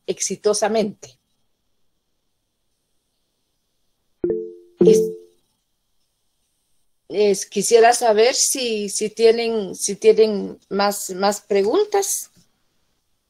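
An elderly woman speaks calmly, heard through an online call.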